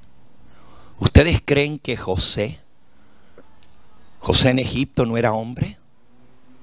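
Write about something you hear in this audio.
An elderly man speaks with emphasis into a microphone, heard through a loudspeaker.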